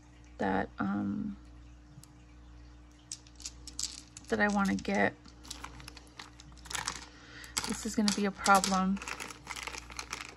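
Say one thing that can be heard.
Plastic packaging crinkles and rustles in someone's hands.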